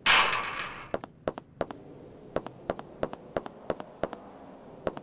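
Footsteps tap on concrete.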